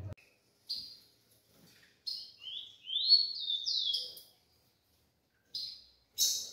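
Small birds chirp and call in short, high bursts.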